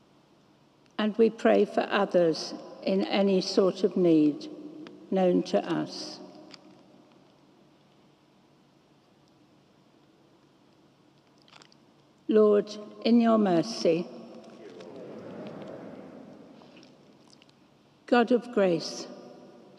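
An elderly woman speaks calmly into a microphone, in a large echoing hall.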